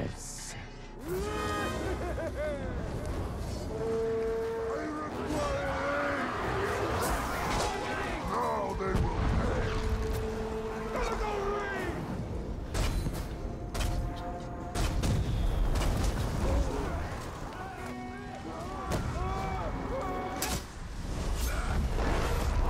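Blades clash and strike with sharp metallic hits.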